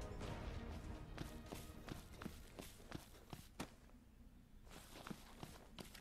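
Footsteps crunch steadily over snowy ground.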